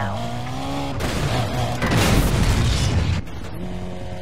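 A car crashes into objects with a loud smash.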